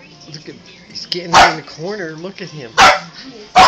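Small dogs growl playfully.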